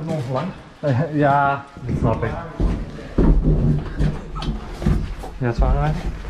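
A metal ladder clatters and knocks as it is handled.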